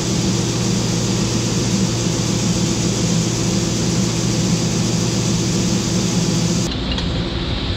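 Grain pours in a steady rushing hiss into a trailer.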